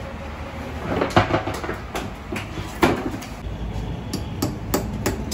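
A knife cuts into a metal tin with sharp scraping clicks.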